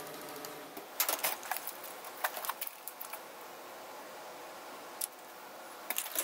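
Items rustle and clatter in a drawer.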